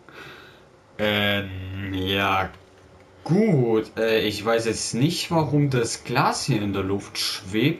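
A man speaks with irritation, close by.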